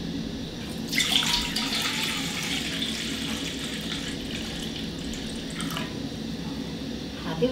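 Water pours from a metal pot into a metal bowl.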